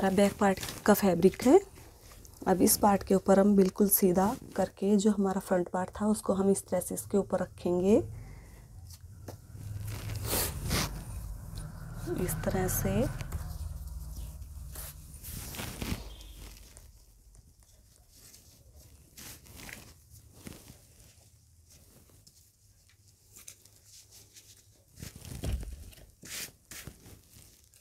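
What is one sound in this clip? Cloth rustles and brushes softly as hands handle and smooth it.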